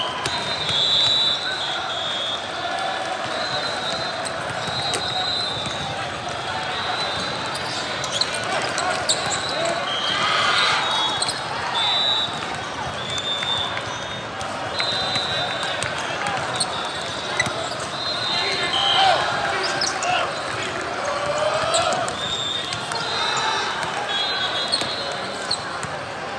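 A crowd of players and spectators chatters and calls out, echoing through a large hall.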